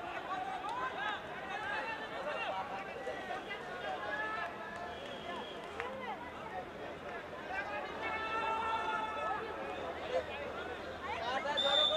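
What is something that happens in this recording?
A crowd of men and children chatter and call out outdoors.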